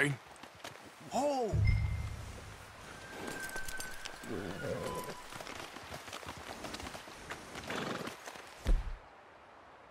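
Horse hooves crunch steadily on snow.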